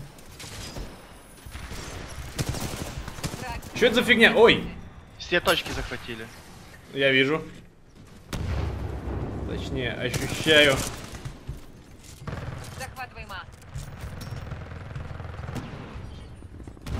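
Gunshots rattle in quick bursts.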